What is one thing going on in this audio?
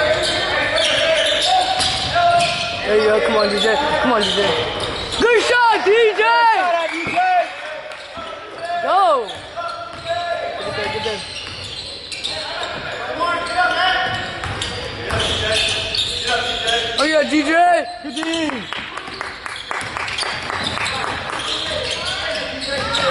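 Voices of a small crowd murmur and call out in a large echoing gym.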